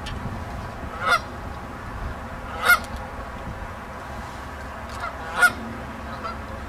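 Geese honk loudly nearby, a few times.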